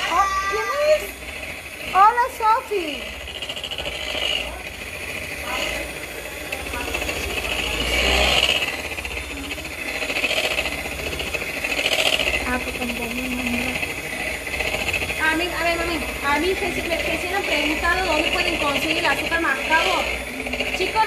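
Mixer beaters clatter against the side of a bowl.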